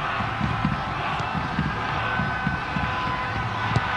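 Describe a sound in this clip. A large stadium crowd murmurs and roars steadily in the distance.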